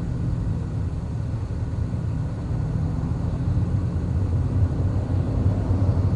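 A truck passes close by with a low rumble.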